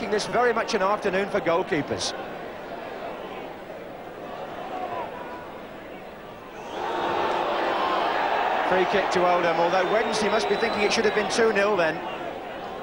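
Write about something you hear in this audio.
A crowd murmurs and roars in a large open stadium.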